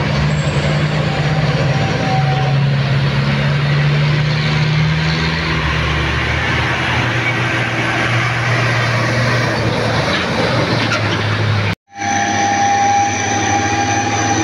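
Tyres hiss on the road as trucks roll past.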